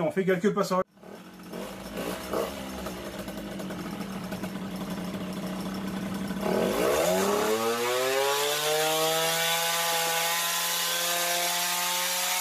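A moped engine idles and then revs up loudly, rising in pitch.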